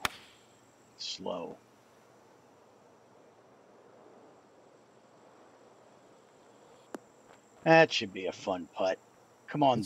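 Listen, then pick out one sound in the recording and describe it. A middle-aged man speaks casually into a close microphone.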